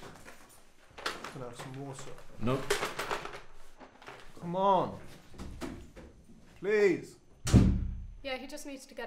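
A young man cries out and groans in distress.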